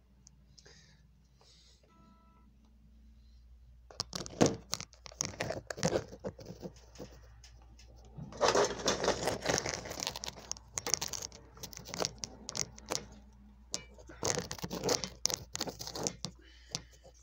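A phone is handled with rustling and knocking close by.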